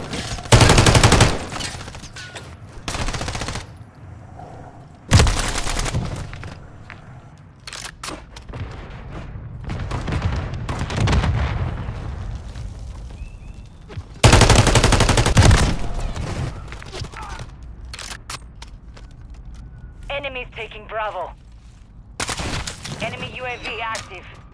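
Gunfire bursts loudly in short, sharp volleys.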